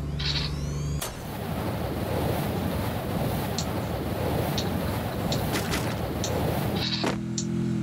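Wind rushes loudly during a freefall.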